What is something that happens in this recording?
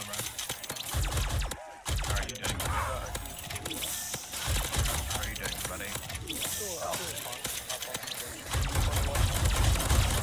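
Game guns fire rapid energy blasts.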